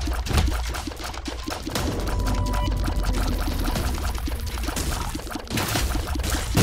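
Rapid shots pop and splat in quick succession.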